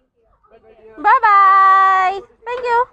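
A boy shouts loudly and long, close by.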